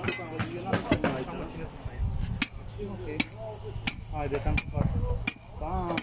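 A metal shovel clinks and scrapes into dry dirt.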